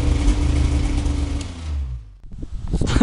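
A snowmobile engine idles steadily close by.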